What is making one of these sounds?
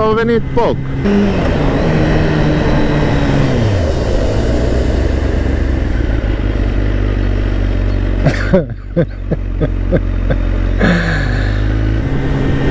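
A motorcycle engine idles and rumbles low while slowing.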